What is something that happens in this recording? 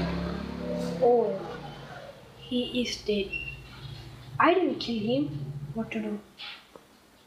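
A boy talks close by with animation.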